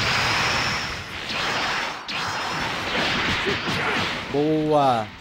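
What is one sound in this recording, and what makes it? Energy blasts whoosh and crackle as fighters clash.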